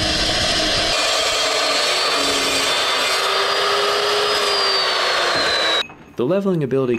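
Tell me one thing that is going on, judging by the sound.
A chop saw blade whines as it spins down and slows.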